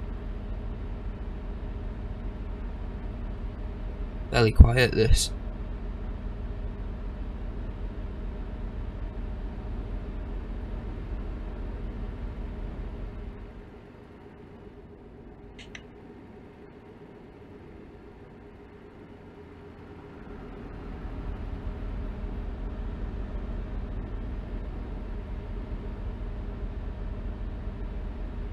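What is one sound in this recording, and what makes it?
A truck engine drones steadily, quieter for a while in the middle.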